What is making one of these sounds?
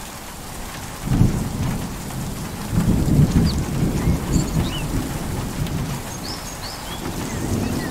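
Waves wash over rocks along the shore.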